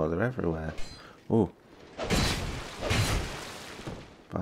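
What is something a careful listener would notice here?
A sword swings through the air with a whoosh.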